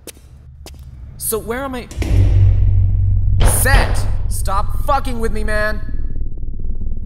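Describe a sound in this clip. A man speaks tensely.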